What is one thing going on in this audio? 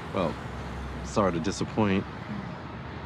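A man speaks calmly and warmly, close by.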